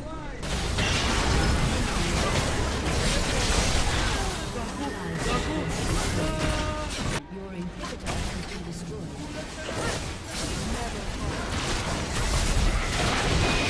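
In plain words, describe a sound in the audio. Magic spell effects whoosh and crackle in a fast-paced battle.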